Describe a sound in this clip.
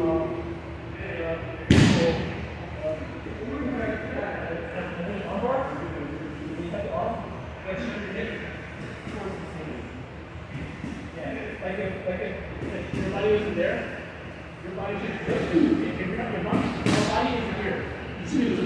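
Men talk casually in a large echoing room.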